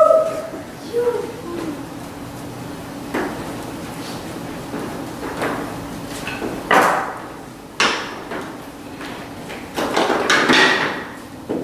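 A man speaks loudly in a large echoing hall.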